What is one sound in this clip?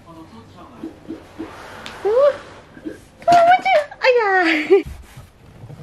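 A toddler squeals and babbles excitedly close by.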